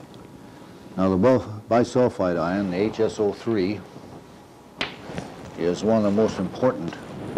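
An elderly man speaks calmly, lecturing.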